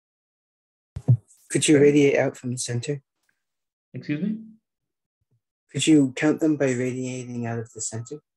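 A man speaks calmly in pauses, close to a microphone.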